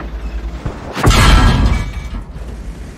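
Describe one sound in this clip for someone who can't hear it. A heavy tank cannon fires with a loud boom.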